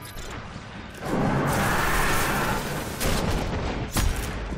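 An explosion roars.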